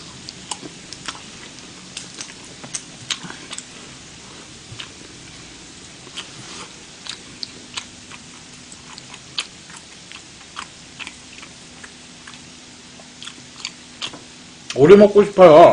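A young man chews food loudly and smacks his lips close to a microphone.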